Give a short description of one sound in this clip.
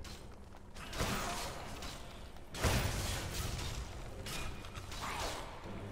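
A magic spell bursts with a loud whoosh.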